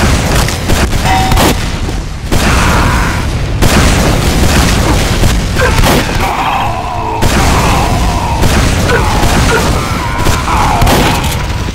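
A shotgun fires in loud, sharp blasts.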